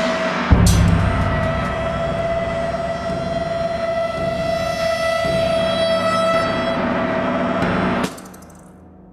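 A band plays loud electronic music with drums and keyboards.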